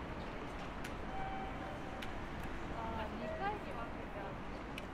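Adults chatter faintly nearby.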